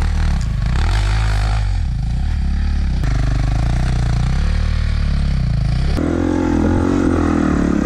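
A dirt bike engine roars and revs up and down.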